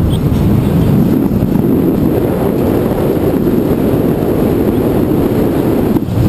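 Wind rushes and buffets close to the microphone.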